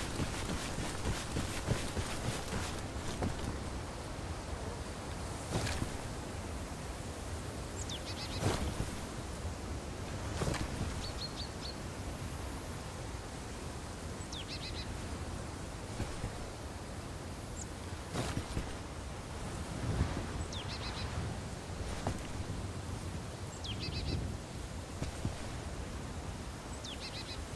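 Wind blows steadily across open ground.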